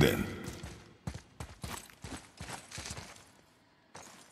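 Heavy footsteps crunch over loose rubble.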